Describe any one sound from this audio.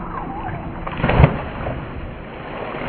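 Water splashes loudly as a girl jumps into a pool.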